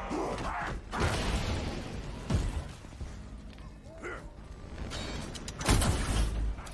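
Heavy blows thud and crack.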